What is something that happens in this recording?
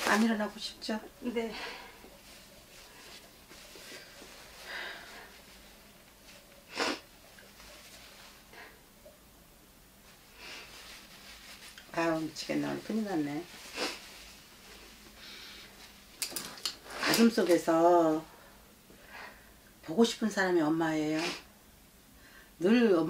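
An older woman speaks close to a microphone, with long pauses.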